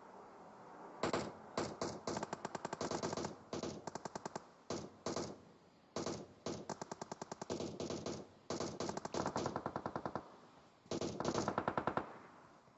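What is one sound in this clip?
An automatic rifle fires in rapid bursts.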